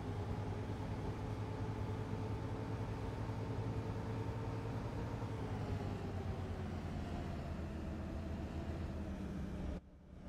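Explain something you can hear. A bus engine hums steadily and drops slightly in pitch as the bus slows.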